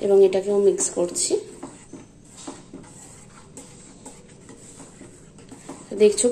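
A wooden spoon stirs and scrapes through thick puree in a pan.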